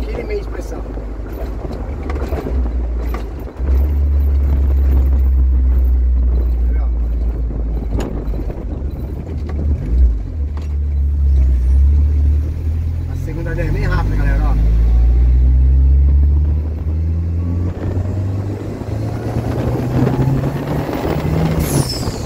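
A car engine drones loudly and revs through the gears.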